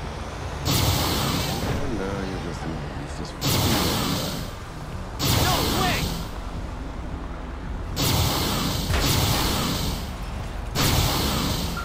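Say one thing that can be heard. A dump truck drives away.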